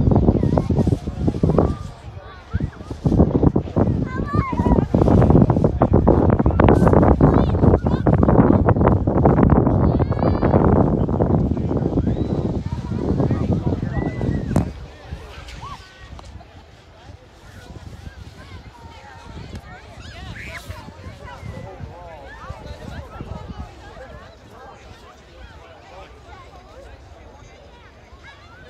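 A crowd of people chatters and calls out at a distance outdoors.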